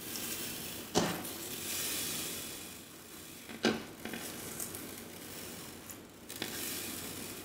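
Sharp pops come from fingers pressing into a bead-filled slime.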